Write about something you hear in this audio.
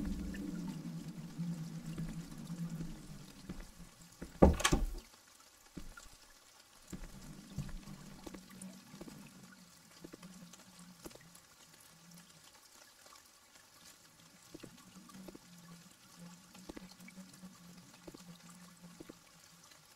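Footsteps thud slowly on wooden floorboards.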